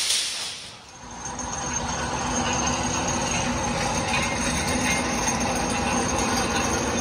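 A machine hums steadily nearby.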